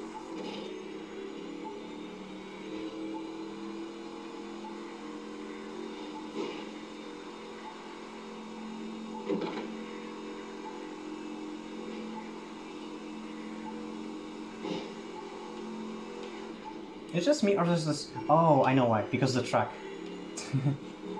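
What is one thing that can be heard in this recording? A game car's engine drones steadily through a loudspeaker.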